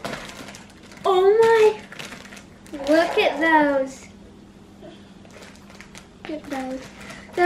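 A young girl exclaims and talks with excitement close by.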